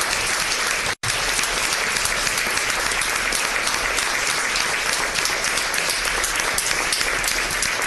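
A crowd applauds loudly in a large room.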